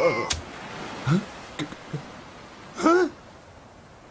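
A man gasps and exclaims in short bursts.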